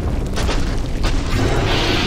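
A huge creature growls and snarls.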